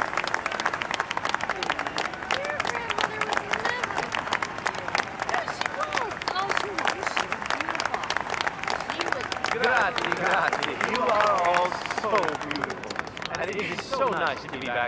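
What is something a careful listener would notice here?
A crowd chatters and applauds outdoors.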